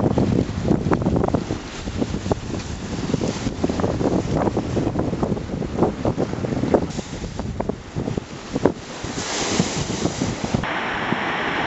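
Waves crash and splash close by.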